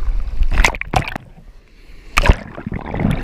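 Water gurgles and bubbles underwater, muffled.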